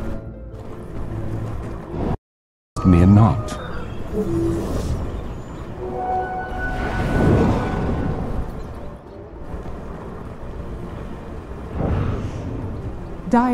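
Magic spells whoosh and crackle in a fantasy battle.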